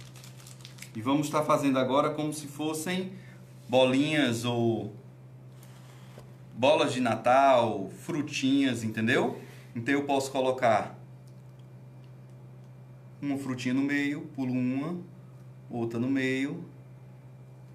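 A man speaks calmly close by, with pauses.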